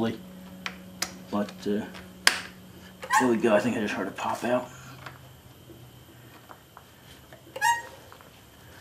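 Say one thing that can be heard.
A metal tool clicks and scrapes against a valve spring.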